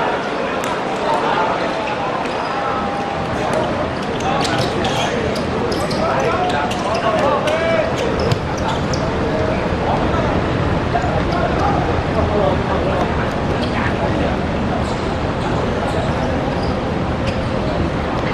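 Men shout to each other across the court.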